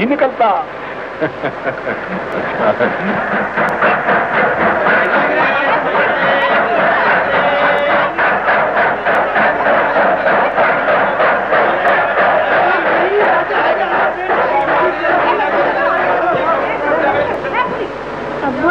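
A large crowd murmurs and chatters outdoors.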